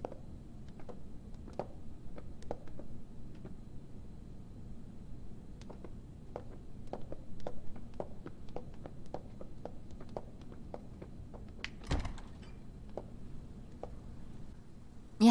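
High heels click on stone stairs.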